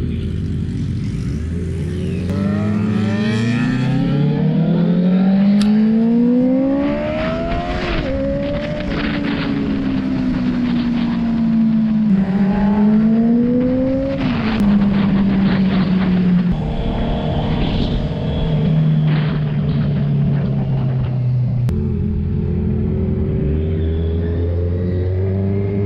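A sportbike engine accelerates through the gears, rising in pitch and dropping at each shift.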